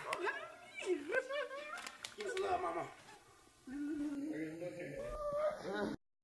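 A woman shouts and laughs excitedly.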